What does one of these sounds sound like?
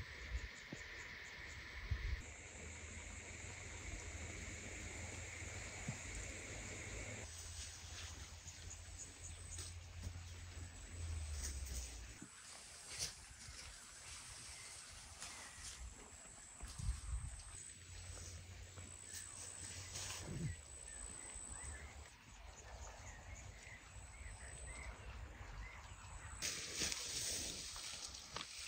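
Wind rustles through leaves outdoors.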